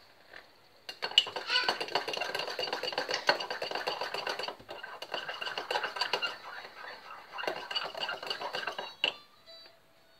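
Water runs from a tap into a kettle.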